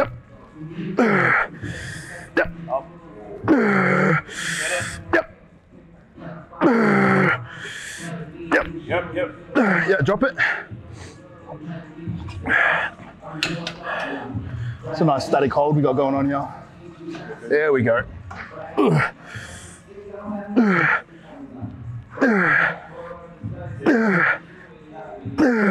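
A man breathes out hard and strains with each lift.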